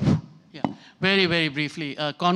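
A man speaks into a microphone over a loudspeaker in a large room.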